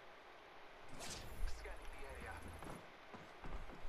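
An explosion bursts with a loud whoosh and rumble.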